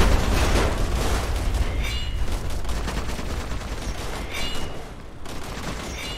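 Fires crackle and roar.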